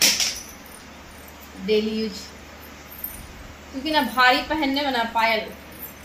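A metal chain jingles softly in someone's hands.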